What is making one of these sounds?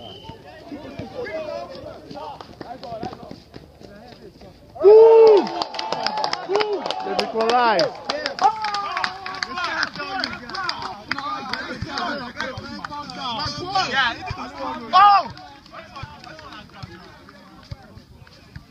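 A crowd of young men shout and cheer close by, outdoors.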